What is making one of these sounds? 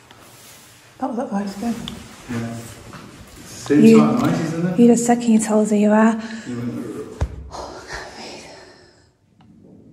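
A man talks in a low voice close by, in an echoing room.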